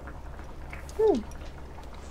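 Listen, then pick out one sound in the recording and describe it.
A young woman hums with a falling tone.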